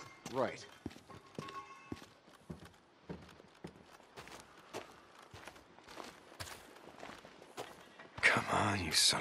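Footsteps crunch on dirt and thud on wooden planks.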